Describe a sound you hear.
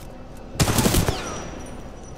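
A gun fires a rapid burst of loud shots.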